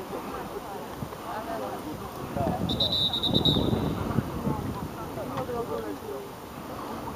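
Young men shout and cheer outdoors at a distance.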